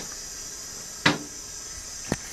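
A toilet seat clatters down onto the bowl.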